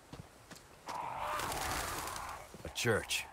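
A crow caws and flaps its wings.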